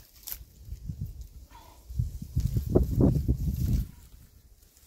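Dry reeds rustle and crackle as a man pulls at them.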